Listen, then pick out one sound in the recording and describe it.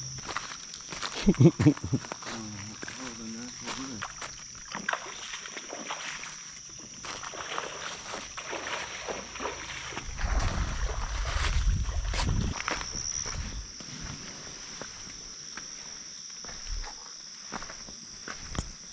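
A shallow stream trickles gently over stones.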